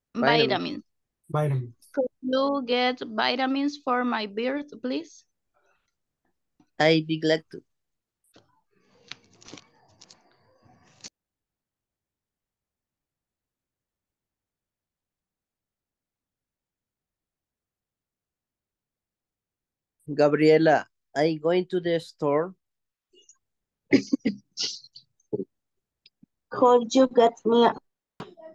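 A woman speaks calmly through an online call, in short bursts with pauses.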